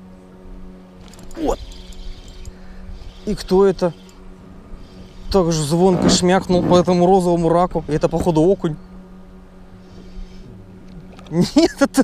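A fishing reel whirs as line is reeled in.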